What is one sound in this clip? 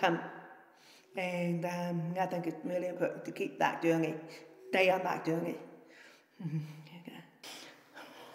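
A middle-aged woman speaks calmly and closely into a microphone.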